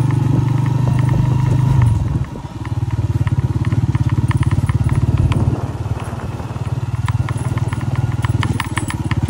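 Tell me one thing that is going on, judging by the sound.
A motorcycle engine putters steadily close by, rising and dropping as the rider shifts speed.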